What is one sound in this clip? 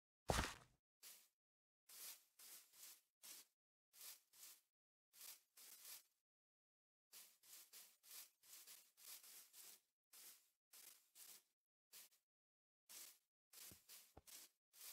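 Footsteps tread on grass at a steady walking pace.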